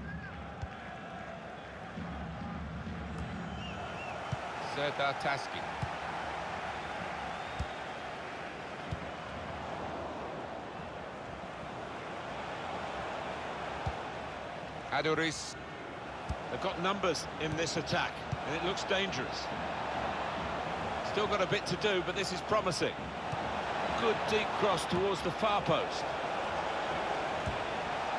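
A stadium crowd roars and murmurs steadily.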